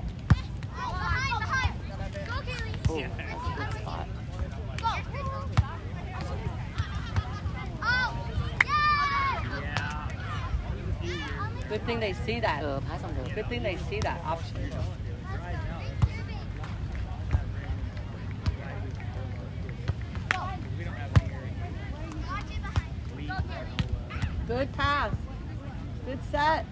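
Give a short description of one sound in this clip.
Young girls call out to each other on a beach.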